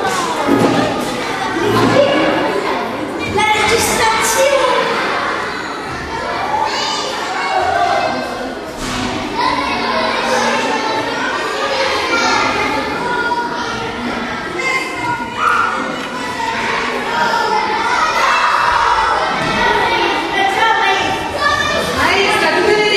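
Several young children chatter and talk over one another nearby.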